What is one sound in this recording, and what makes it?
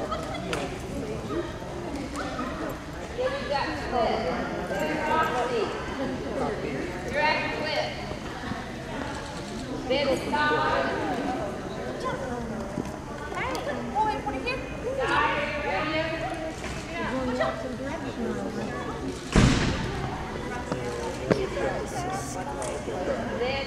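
A man calls out short commands to a dog in a large echoing hall.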